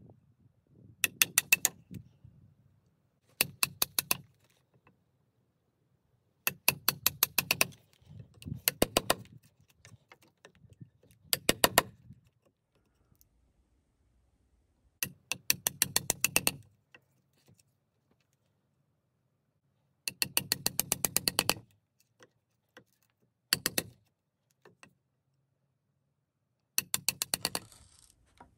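A chisel scrapes and chips at wood in short, rapid bursts.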